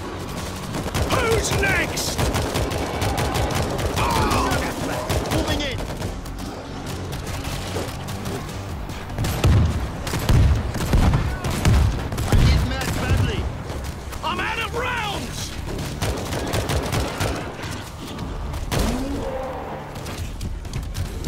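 A horde of zombies snarls and shrieks.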